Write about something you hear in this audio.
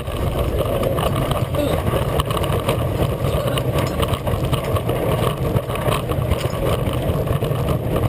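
A wooden roller coaster train rumbles and rattles loudly along its track.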